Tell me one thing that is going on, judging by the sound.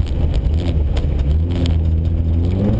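Clumps of snow and ice knock against the car's underside.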